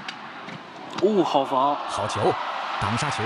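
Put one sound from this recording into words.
A large crowd cheers and applauds in an echoing hall.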